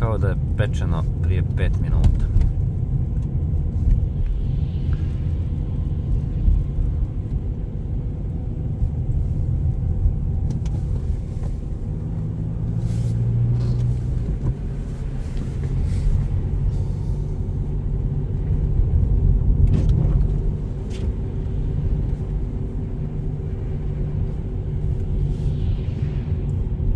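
A car's engine and tyres rumble from inside as it drives along a slushy, snowy road.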